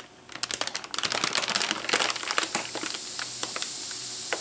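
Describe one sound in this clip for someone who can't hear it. A plastic bag rustles loudly.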